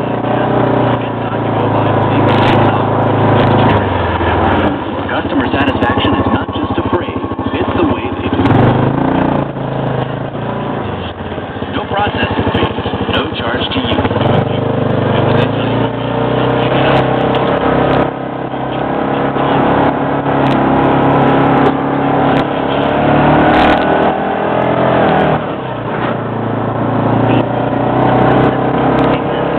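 An engine roars and revs as a small off-road vehicle drives over rough ground.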